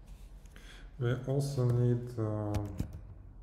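A young man speaks briefly and calmly into a nearby microphone.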